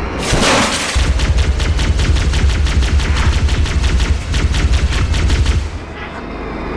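A vehicle's guns fire in rapid bursts.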